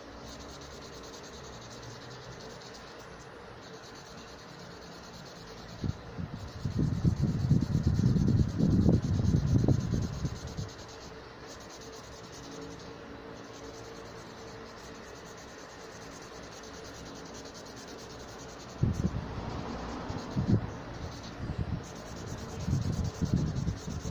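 A felt-tip marker scratches and squeaks softly on paper.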